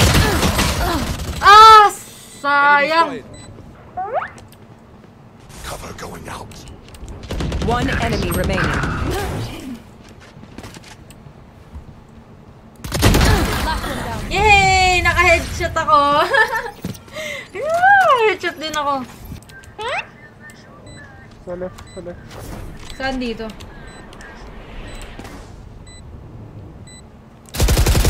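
A young woman talks and exclaims with animation close to a microphone.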